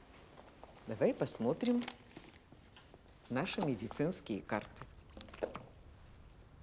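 An older woman speaks calmly and clearly.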